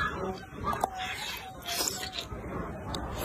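A young woman slurps noodles loudly close by.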